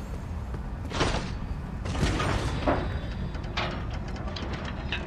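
A metal cage lift clanks and rattles as it moves.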